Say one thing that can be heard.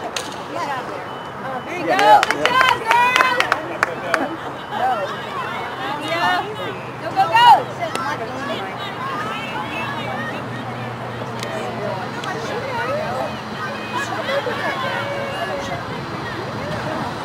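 Field hockey sticks clack against a ball.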